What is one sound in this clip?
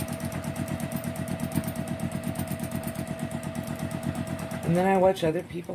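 A sewing machine runs with a fast, steady clatter.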